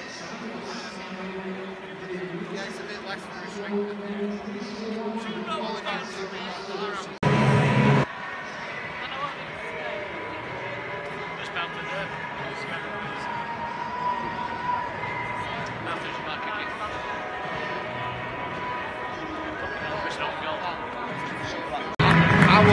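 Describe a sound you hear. A crowd of men chatters nearby in a large echoing stadium.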